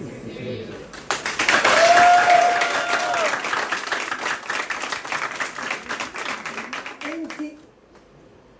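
An audience claps and cheers loudly.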